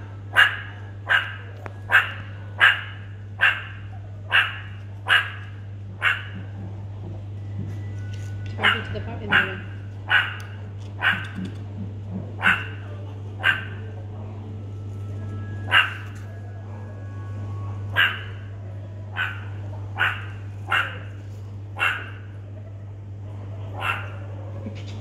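A meerkat gives sharp, repeated chirping calls close by.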